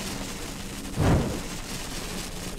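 An explosion booms with a short, deep thud.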